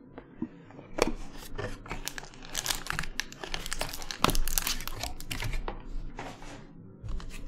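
Cardboard and foil packaging rustles and crinkles as a box is torn open.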